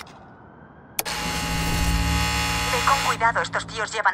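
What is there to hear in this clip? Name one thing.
An electrical hum starts and drones on.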